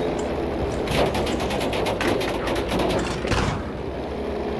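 Machine guns rattle in rapid bursts.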